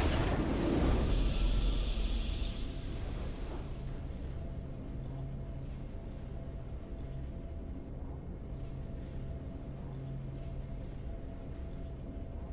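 A triumphant game fanfare swells and then settles into a quiet, steady hum of music.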